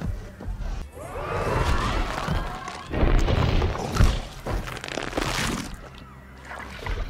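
A large dinosaur roars loudly and growls.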